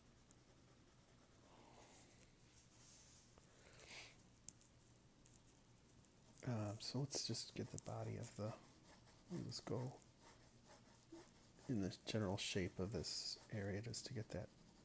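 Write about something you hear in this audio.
A pencil scratches and swishes softly on paper.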